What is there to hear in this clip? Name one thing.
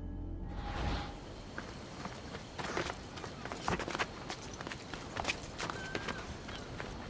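Footsteps scuff on rock.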